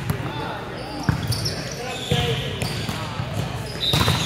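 A volleyball thumps off a player's arms.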